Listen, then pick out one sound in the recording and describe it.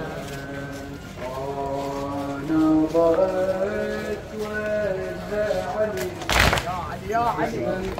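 A man chants loudly in a melodic voice through a microphone and loudspeaker outdoors.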